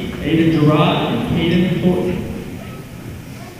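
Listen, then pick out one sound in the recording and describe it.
A crowd of people talk in a large echoing hall.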